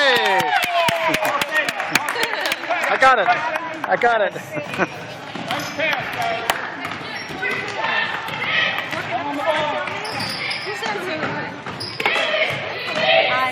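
Young players shout and call out in a large echoing gym.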